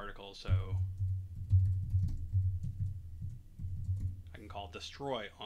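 Keys clack quickly on a keyboard.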